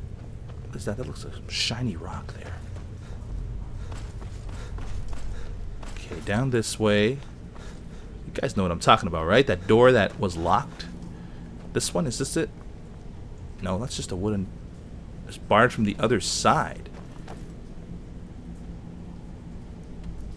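Footsteps tread slowly on stone.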